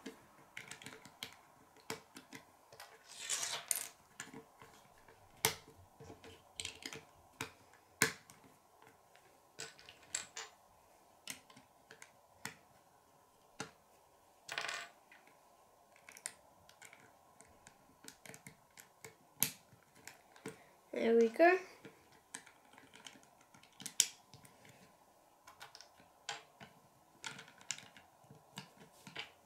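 Small plastic bricks click and snap together under fingers.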